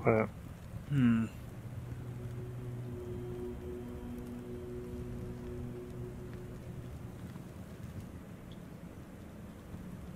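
Fire roars steadily.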